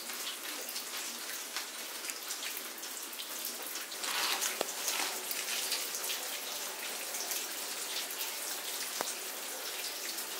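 A bicycle's wheels tick softly as it is pushed along.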